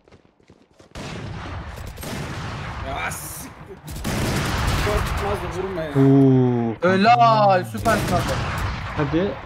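Gunshots fire in rapid bursts from a video game.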